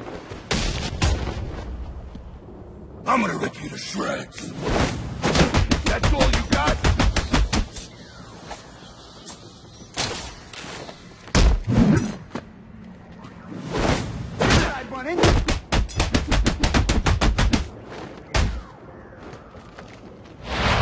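Punches and kicks land with heavy thuds in rapid bursts.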